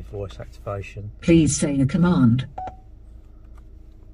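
A button on a steering wheel clicks.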